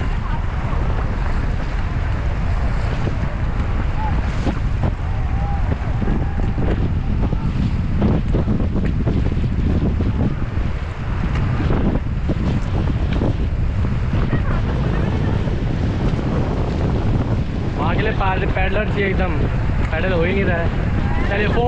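Wind blows hard against the microphone.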